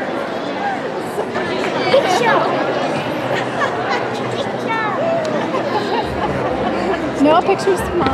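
Young girls and adults chatter in a large echoing hall.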